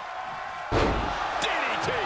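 A body thuds heavily onto a wrestling mat.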